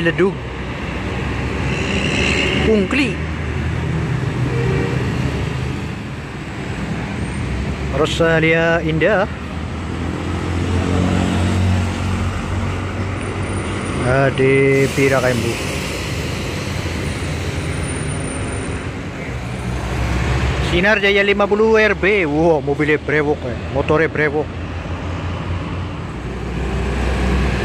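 Diesel coach buses rumble past on a road.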